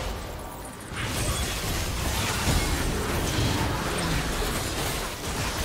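Magic blasts and hits burst and clash in a video game fight.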